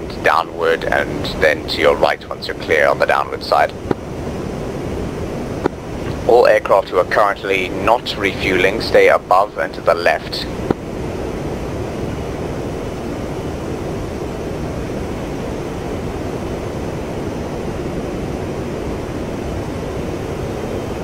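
A jet engine hums steadily from inside a cockpit.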